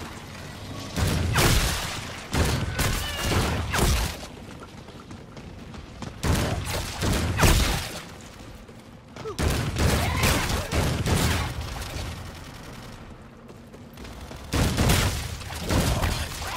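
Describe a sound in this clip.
Two guns fire in rapid bursts.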